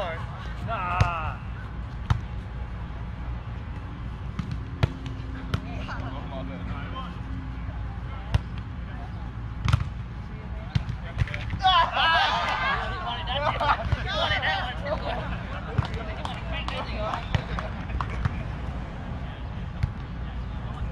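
A volleyball is hit with dull thumps.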